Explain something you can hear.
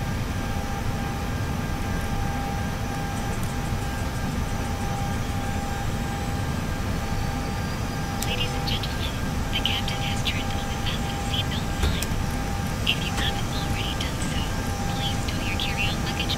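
A jet engine hums with a steady low rumble.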